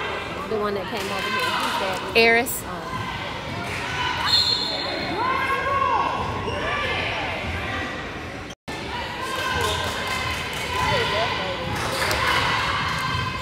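Spectators talk and shout in an echoing gym.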